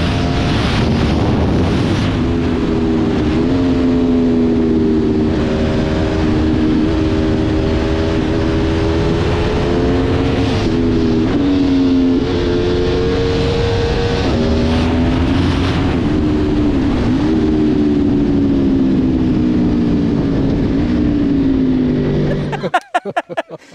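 Wind rushes past loudly at speed.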